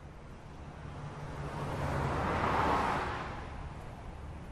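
A van drives past close by on a street.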